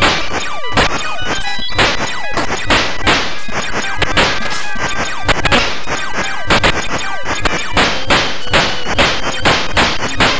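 Chiptune game music plays steadily with a driving beat.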